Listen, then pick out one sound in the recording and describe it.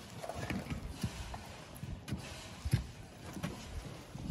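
A shovel scrapes and crunches into loose gravel.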